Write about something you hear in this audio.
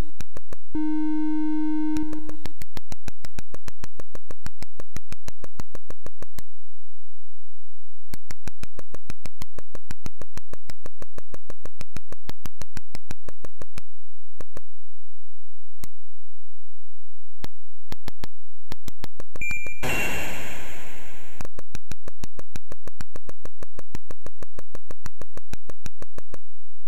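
Rapid electronic clicks tick steadily from a retro video game.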